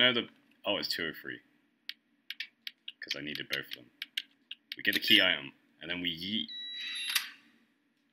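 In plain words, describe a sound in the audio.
Keypad buttons beep as they are pressed.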